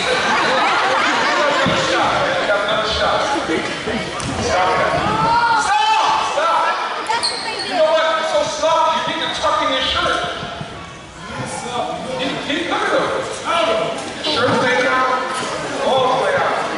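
A crowd of men and women chatters in a large echoing gym.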